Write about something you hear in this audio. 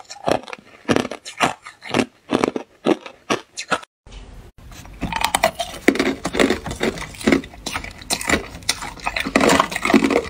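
A young woman crunches ice loudly, close to the microphone.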